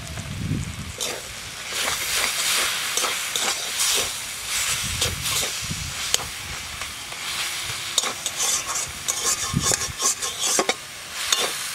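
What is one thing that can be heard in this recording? A metal spatula scrapes and clatters against a metal wok.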